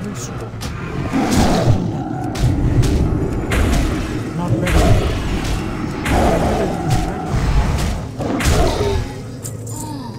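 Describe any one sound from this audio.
Weapons clash and magic spells burst in a fight.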